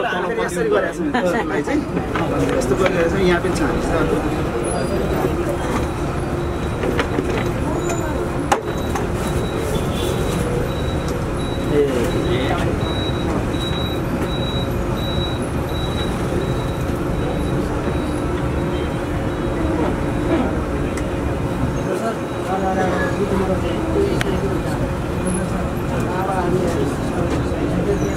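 Several men chatter nearby.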